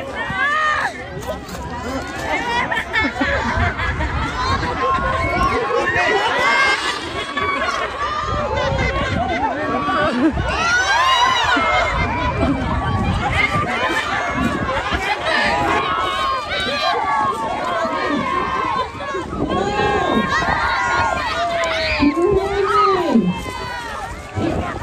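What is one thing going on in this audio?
Water splashes around swimmers.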